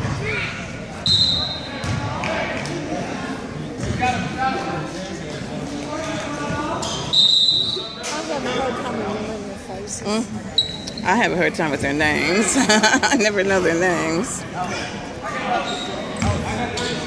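A referee's whistle blows in short, shrill blasts several times.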